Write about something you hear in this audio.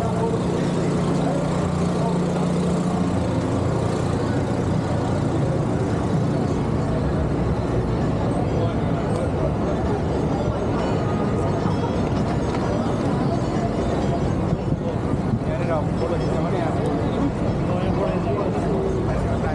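A crowd of people murmurs and talks nearby.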